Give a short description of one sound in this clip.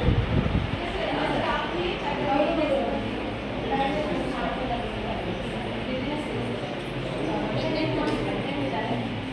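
Several men talk at once nearby.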